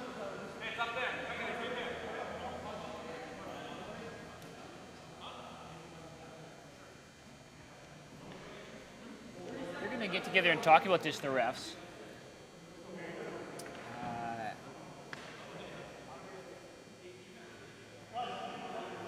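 Players shout to each other in a large echoing hall.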